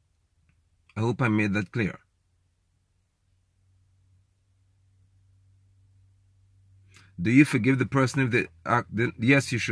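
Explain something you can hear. A man speaks calmly and close up, with pauses.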